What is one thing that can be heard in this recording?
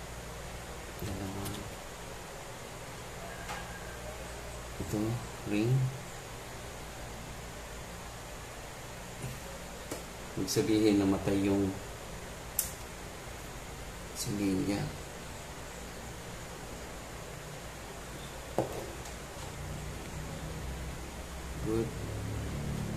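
A man speaks briefly in short bursts close by.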